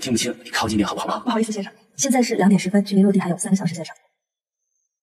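A man speaks loudly and drawn out, close by.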